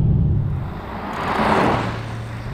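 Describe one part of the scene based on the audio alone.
A car passes close by on a snowy road with a rushing whoosh.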